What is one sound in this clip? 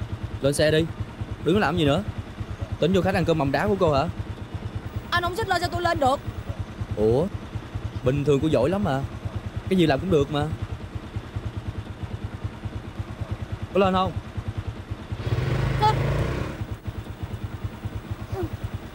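A scooter engine idles with a steady low putter.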